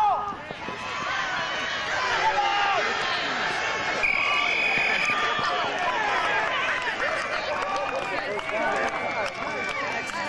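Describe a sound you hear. A crowd of spectators chatters and cheers in the background.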